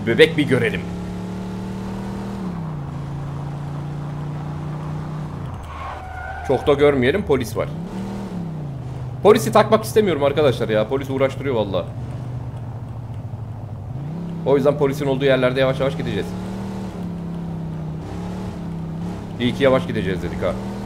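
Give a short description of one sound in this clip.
A car engine hums steadily, rising and falling in pitch as it speeds up and slows.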